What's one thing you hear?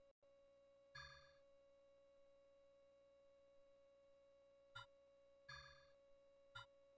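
Short electronic chimes beep several times.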